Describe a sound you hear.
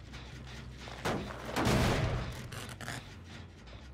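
A machine clanks and crashes loudly as it is damaged.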